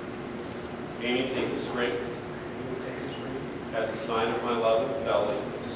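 A man speaks slowly and calmly in a large echoing hall.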